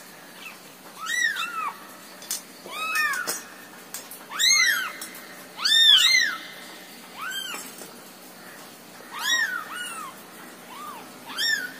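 A kitten mews loudly and repeatedly up close.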